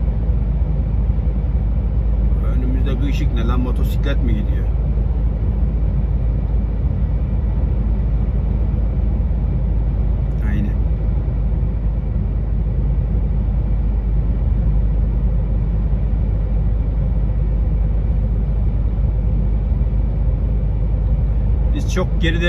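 A vehicle drives steadily along a highway with a constant low road rumble and tyre roar.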